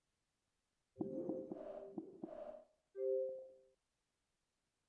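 Short electronic menu chimes sound a few times in quick succession.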